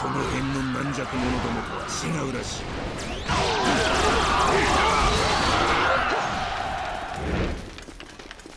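Weapons clash and strike in a crowded battle.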